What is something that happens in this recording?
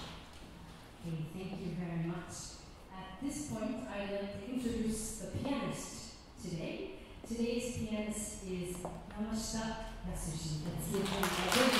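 A woman sings closely into a microphone.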